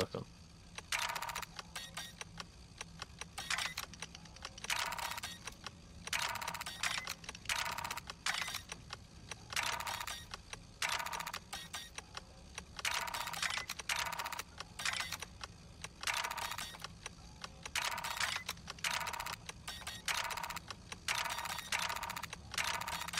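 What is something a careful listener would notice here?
A metal lock dial grinds and clicks in repeated short bursts as it turns.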